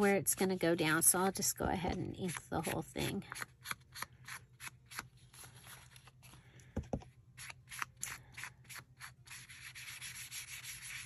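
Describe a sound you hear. A foam ink tool taps and dabs rapidly on paper.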